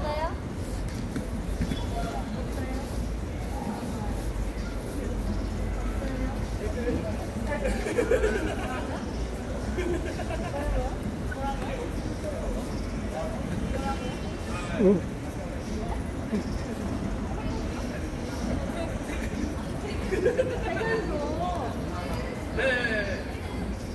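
A young woman sings through a loudspeaker outdoors.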